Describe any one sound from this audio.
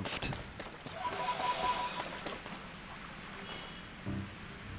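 Game chimes ring softly as items are picked up.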